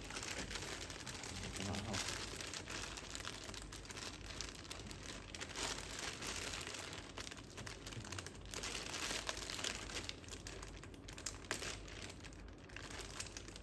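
Plastic wrap crinkles and rustles as hands tear at it.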